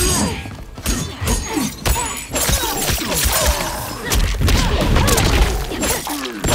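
Heavy punches and kicks land with sharp, booming thuds.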